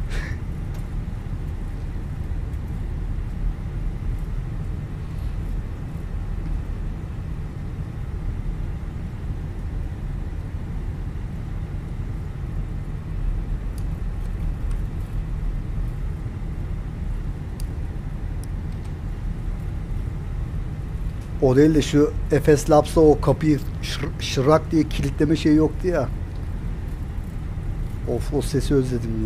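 A jet engine hums low and steady.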